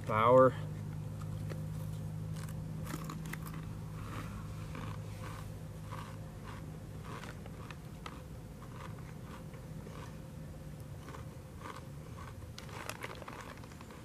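A young man crunches chips.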